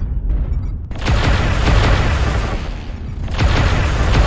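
An energy blast crackles and roars loudly.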